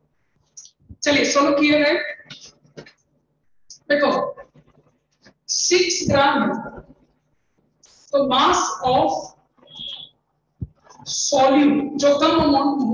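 A man speaks calmly and explains, heard close to a microphone.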